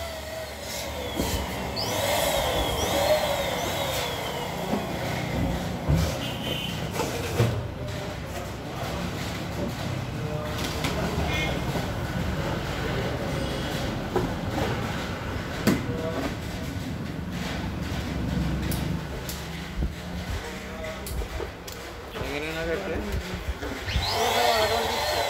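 Rubber balloons squeak and rub against each other as hands press them together.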